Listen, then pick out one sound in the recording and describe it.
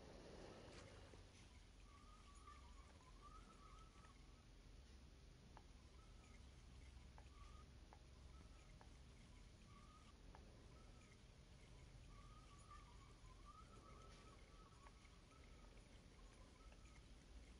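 A fishing reel clicks as the line winds in.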